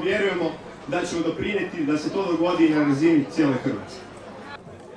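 A man speaks loudly through a loudspeaker outdoors.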